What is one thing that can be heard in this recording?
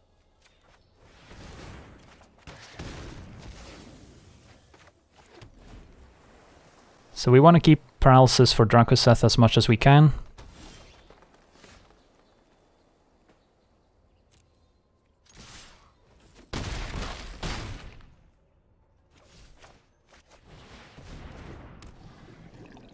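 Game sound effects chime and whoosh as cards are played.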